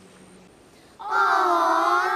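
A group of children shout together.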